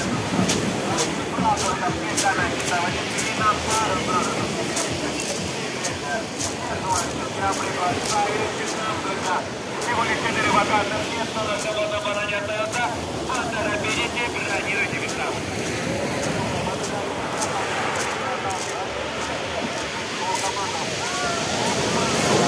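A crowd of men, women and children chatter and shout nearby outdoors.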